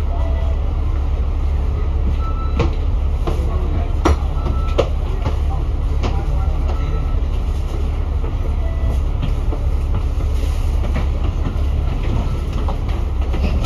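City traffic rumbles steadily along a busy street.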